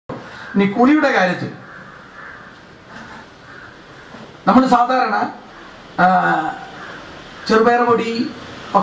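A man speaks into a microphone over a loudspeaker, in short phrases with pauses, in a slightly echoing space.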